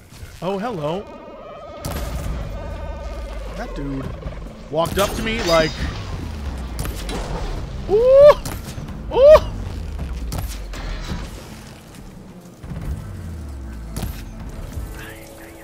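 A bowstring twangs as arrows fly.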